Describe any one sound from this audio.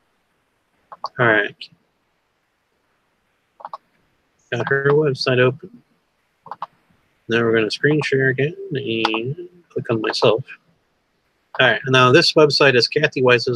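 A man speaks calmly through a headset microphone on an online call.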